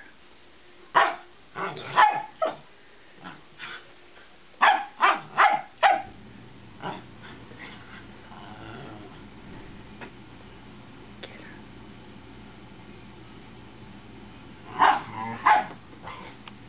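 A small dog barks sharply in short bursts close by.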